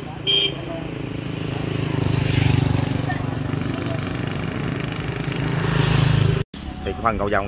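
A motorbike engine hums past and fades.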